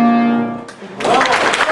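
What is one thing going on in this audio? A clarinet holds a final note, then stops.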